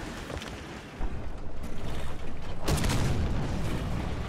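A shell explodes nearby.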